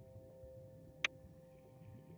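A menu button gives a short sharp click.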